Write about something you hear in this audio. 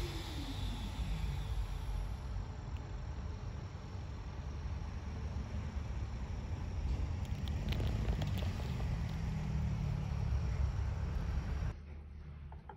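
Wind blows through pine trees outdoors.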